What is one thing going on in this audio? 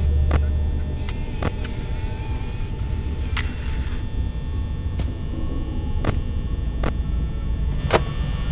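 Electronic static hisses steadily.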